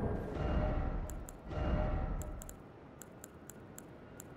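Menu clicks tick quickly.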